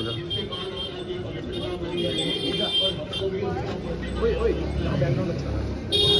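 People chatter nearby outdoors.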